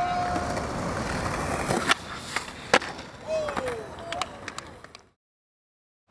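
Skateboard wheels roll over rough concrete.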